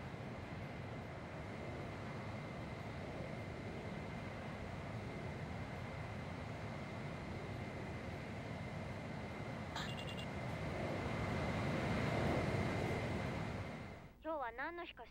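A jet engine roars steadily overhead.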